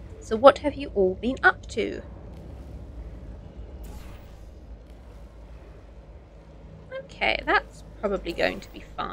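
A woman talks with animation into a nearby microphone.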